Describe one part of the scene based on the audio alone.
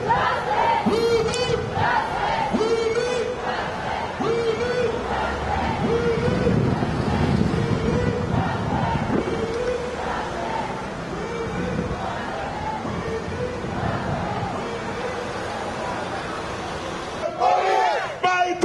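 A crowd of marchers chants in a steady rhythm outdoors.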